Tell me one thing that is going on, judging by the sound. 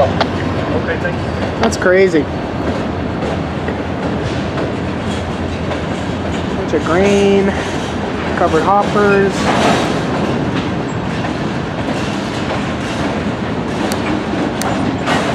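A freight train rolls past close by with a steady rumble and clatter.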